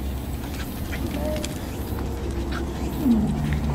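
A young woman speaks cheerfully outdoors.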